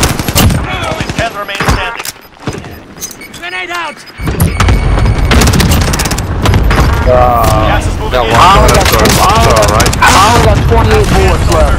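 Rifle shots fire in quick bursts close by.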